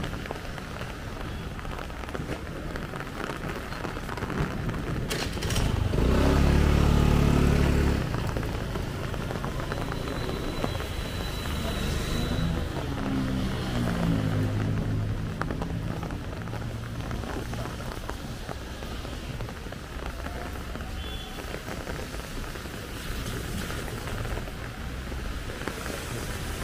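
Light rain patters steadily outdoors.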